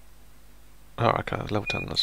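A computer game's sound effects play.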